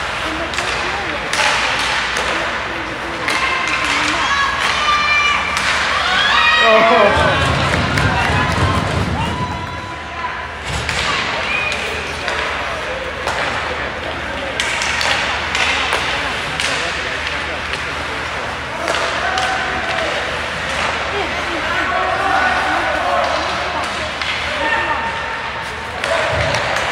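Skates scrape across the ice in a large echoing rink.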